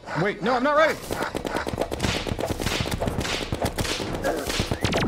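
Rapid game gunfire and blasts crackle.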